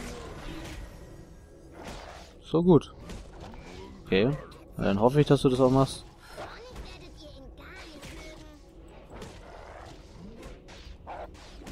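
A fight plays out with quick hits, swishes and magic bursts.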